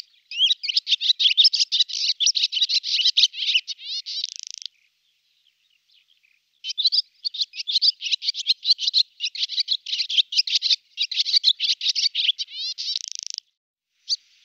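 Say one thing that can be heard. A swallow sings a fast twittering song with rattling trills.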